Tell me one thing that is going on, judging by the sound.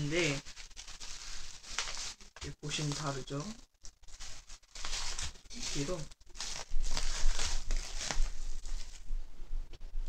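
Plastic bubble wrap crinkles as hands unwrap it.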